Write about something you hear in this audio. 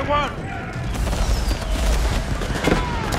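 A cannon fires with a deep boom.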